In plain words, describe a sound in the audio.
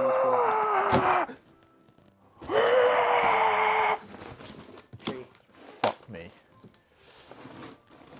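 Cardboard rustles as a box is opened.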